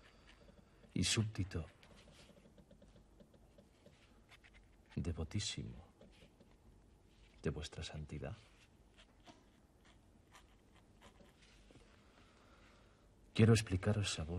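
A man speaks quietly in short phrases, close by.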